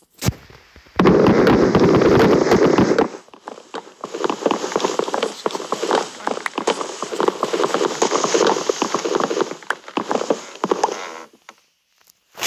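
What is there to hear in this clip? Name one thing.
Video game sound effects of an axe chopping wooden blocks thud in quick succession.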